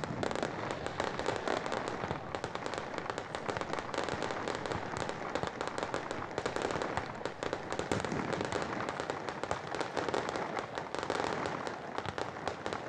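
Fireworks crackle and pop rapidly in the distance.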